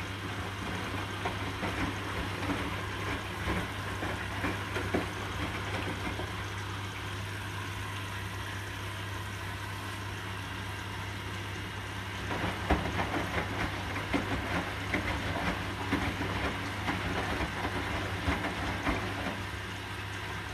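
Wet laundry sloshes and thumps as a drum tumbles.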